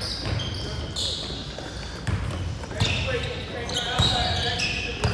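A basketball bounces with hollow thumps on the court.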